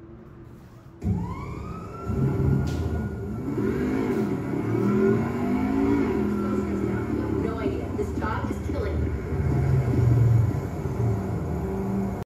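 A television plays game music and sounds through its speakers.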